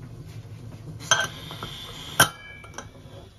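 A metal valve weight clicks as it is lifted off a pressure cooker.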